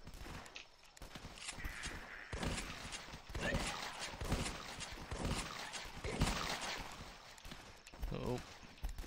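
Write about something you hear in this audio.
Guns fire in repeated sharp shots.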